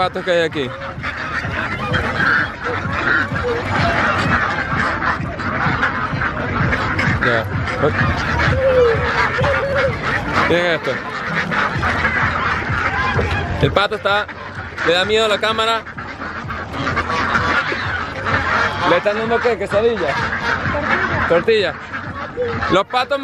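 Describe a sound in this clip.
A large flock of ducks quacks loudly and constantly close by.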